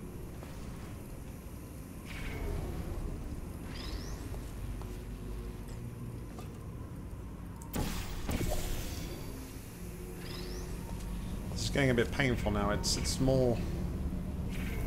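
A game's laser beam hums steadily.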